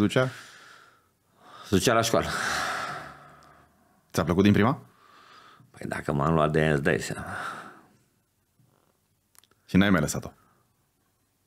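An older man talks with animation close to a microphone.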